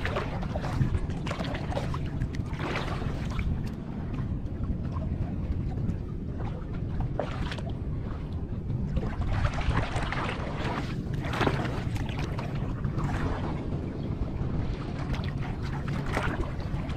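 Small waves lap and splash against a reedy riverbank.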